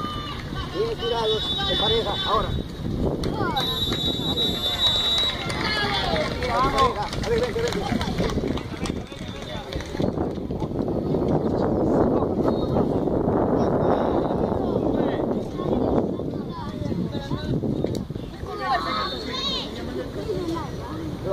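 Young children shout and chatter excitedly outdoors.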